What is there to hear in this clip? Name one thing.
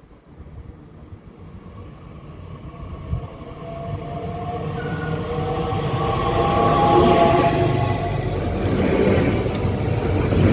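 An electric train approaches and rushes past close by, growing steadily louder.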